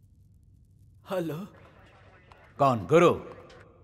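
A man answers tensely over a phone line.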